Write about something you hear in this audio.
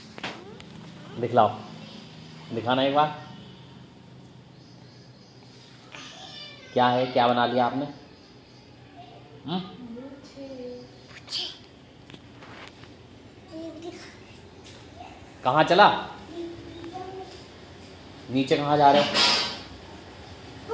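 A toddler babbles and speaks in a high voice close by.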